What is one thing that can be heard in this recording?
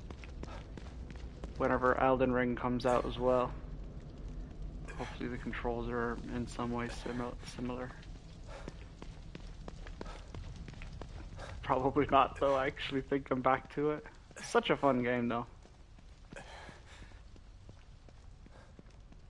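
Footsteps run over wet pavement.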